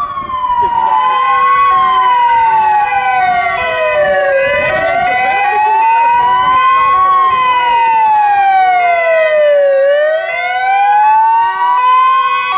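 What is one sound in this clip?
A second siren blares in a steady two-tone pattern.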